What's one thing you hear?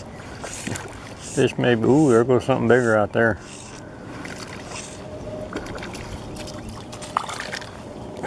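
A fish splashes at the water's surface nearby.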